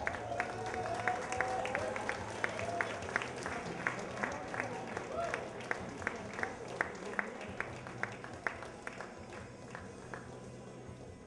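An audience claps along in steady rhythm.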